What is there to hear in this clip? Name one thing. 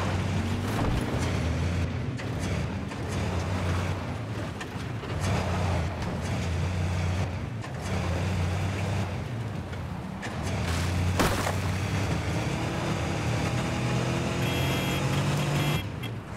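Tyres rumble over gravel and dirt.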